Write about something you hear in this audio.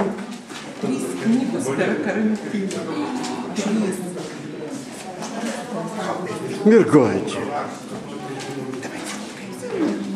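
Another middle-aged woman answers and laughs close by.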